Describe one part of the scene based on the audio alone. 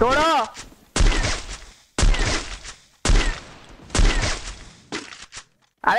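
A sniper rifle fires loud single shots, each followed by a short echo.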